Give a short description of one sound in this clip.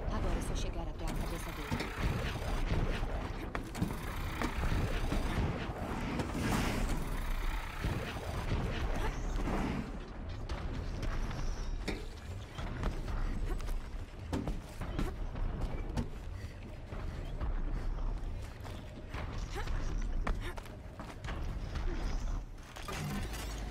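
Metal clanks and scrapes as a climber grabs onto a huge machine.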